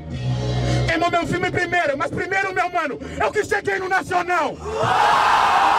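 A young man raps rhythmically into a microphone over a loudspeaker.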